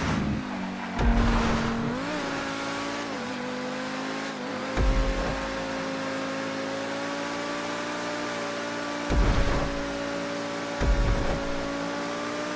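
Low thumps sound now and then as a car bumps over the road.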